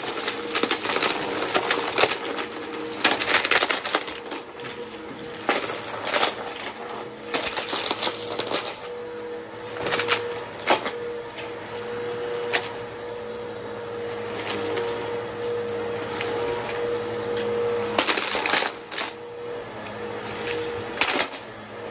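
Small bits of debris rattle and click as a vacuum cleaner sucks them up.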